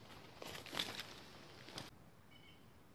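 Cloth brushes and rustles loudly right against the microphone.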